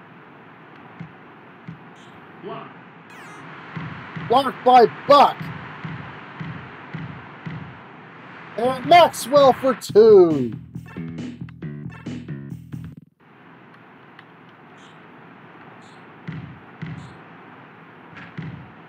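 A basketball bounces on a court with dull thuds.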